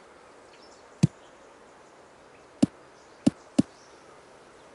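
A golf ball bounces several times and comes to rest.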